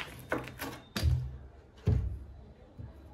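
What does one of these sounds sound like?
A knife knocks against a wooden board.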